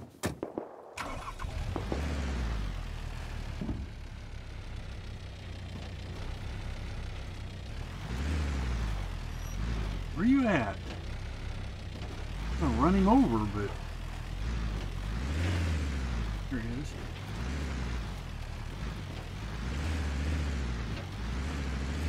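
A car engine rumbles low and revs up and down.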